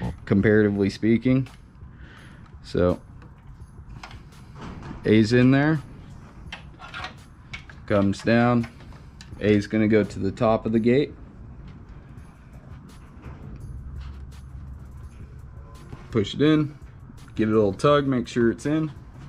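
Hands fiddle with engine parts, making light clicks and taps.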